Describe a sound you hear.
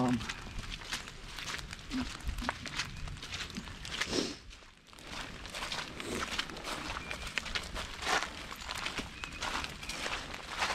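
Footsteps crunch and rustle through dry leaves on the ground.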